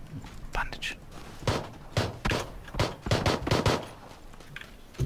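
Footsteps tap quickly on a hard roof.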